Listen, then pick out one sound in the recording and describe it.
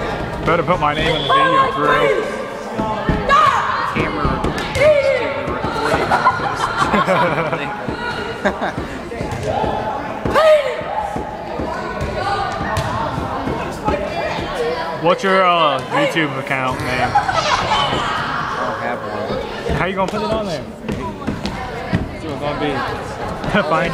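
Children shout and chatter in a large echoing hall.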